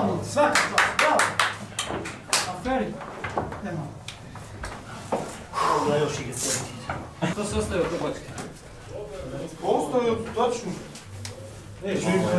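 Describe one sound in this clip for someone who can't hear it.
Several men talk and call out with animation close by.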